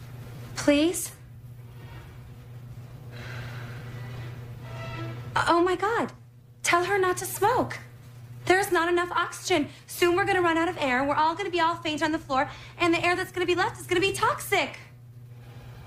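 A young woman speaks close by, agitated and animated.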